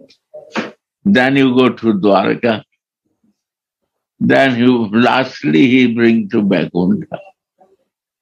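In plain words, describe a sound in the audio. An elderly man speaks calmly and warmly, close by.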